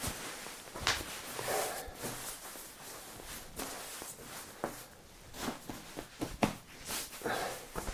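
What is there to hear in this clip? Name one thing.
A man speaks calmly and clearly close to a microphone.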